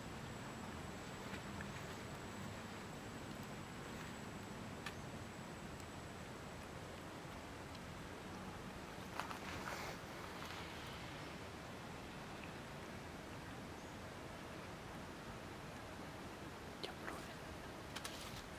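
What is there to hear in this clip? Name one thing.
A monkey chews and munches on fruit.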